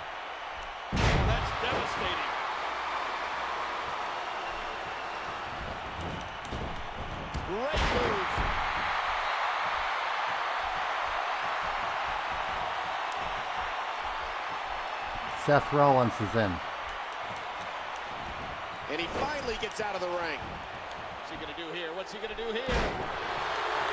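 Heavy bodies slam onto a wrestling mat with loud thuds.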